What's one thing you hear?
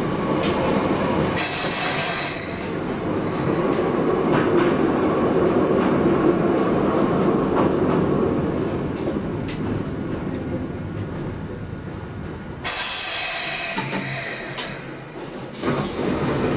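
A train rumbles along the tracks and gradually slows down.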